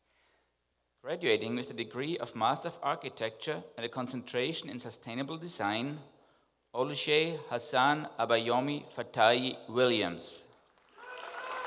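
A man announces names calmly through a microphone in a large hall.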